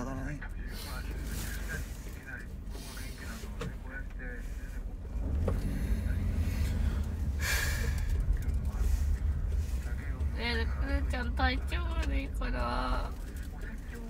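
A young man sobs and whimpers close by.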